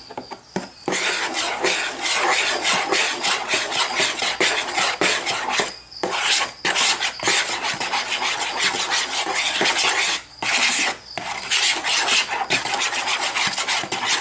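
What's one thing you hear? A hand squelches and squishes wet dough in a plastic bowl.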